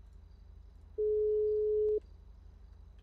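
A phone gives a single dialling beep.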